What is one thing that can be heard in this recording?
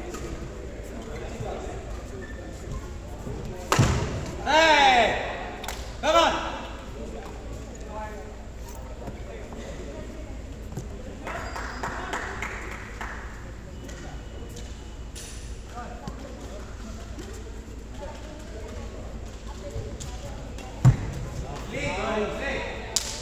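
Badminton rackets strike a shuttlecock.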